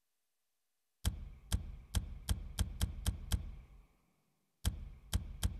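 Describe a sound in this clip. Menu clicks tick in quick succession.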